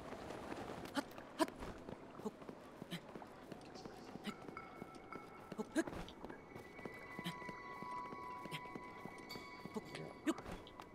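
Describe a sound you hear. Hands and boots scrape and tap on rock during a climb.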